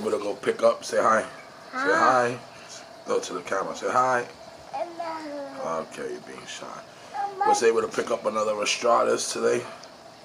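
A young child speaks and squeals close by.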